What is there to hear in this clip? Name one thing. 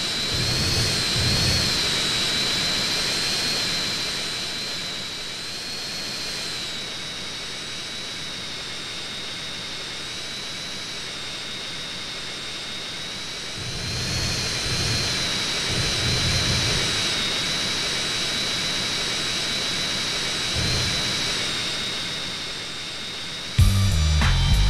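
A jet engine whines steadily as a plane flies low and lands.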